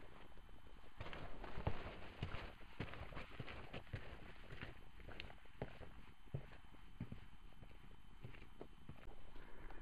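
Boots crunch and scrape on a rocky trail.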